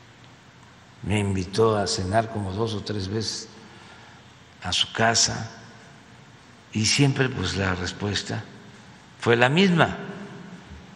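An elderly man speaks calmly into a microphone in short bursts.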